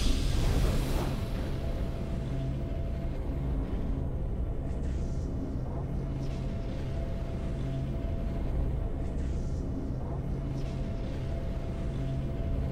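Calm game music plays softly.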